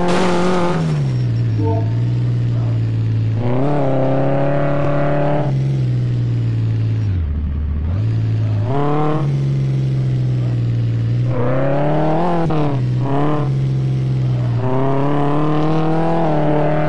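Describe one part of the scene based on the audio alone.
A racing car engine roars steadily, its pitch jumping up and dropping as it shifts gears.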